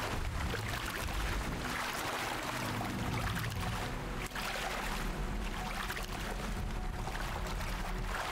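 Water splashes as a creature swims through a shallow stream.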